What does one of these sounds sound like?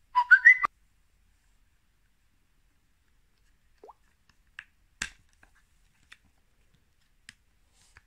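A charging cable clicks into a phone's port.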